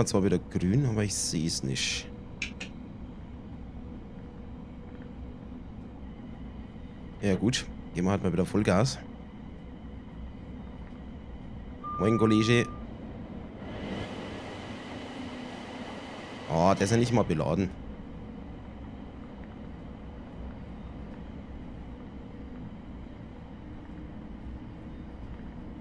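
An electric train hums and rumbles steadily along the rails.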